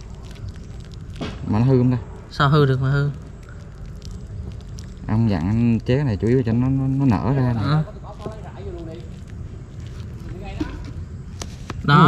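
Water trickles and splashes from a pipe onto wet ground.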